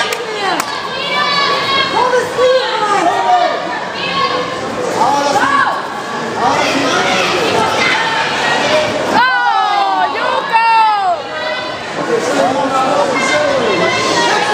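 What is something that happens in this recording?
A crowd of men and women shout encouragement in a large echoing hall.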